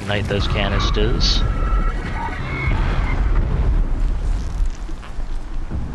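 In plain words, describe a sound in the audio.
A machine explodes with a deep, rumbling boom.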